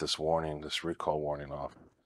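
A finger taps lightly on a touchscreen.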